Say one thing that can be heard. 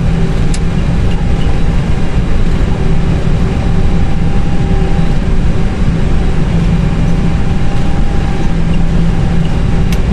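Aircraft wheels rumble over the taxiway.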